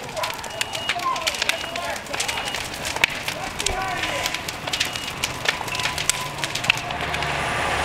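Flames crackle and pop loudly.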